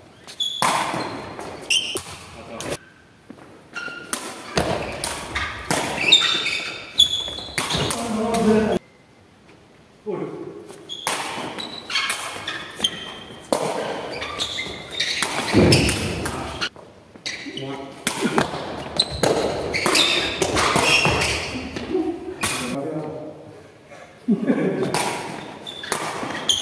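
Sneakers squeak on the hall floor.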